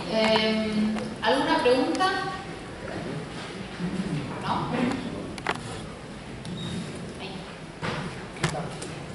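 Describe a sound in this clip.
A woman speaks calmly into a microphone in a room with some echo.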